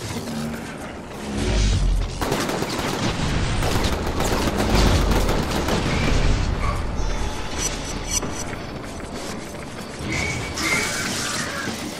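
Electric bolts crackle and zap in quick bursts.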